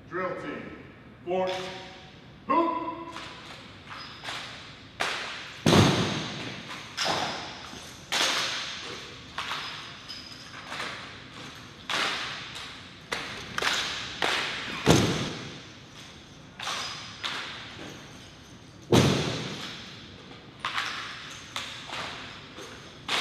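Rifles clack and thud sharply as a drill team handles them, echoing in a large hall.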